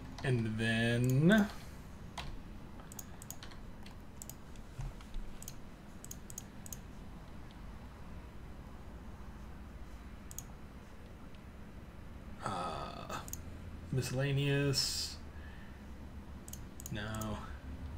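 Soft clicks sound now and then as menu buttons are pressed.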